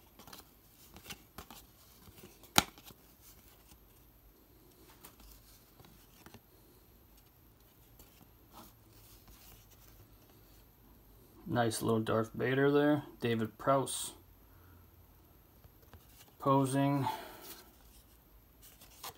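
Trading cards rustle and slide against each other in someone's hands.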